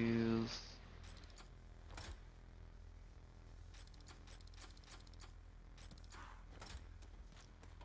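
A mechanical dial clicks and ratchets as it turns.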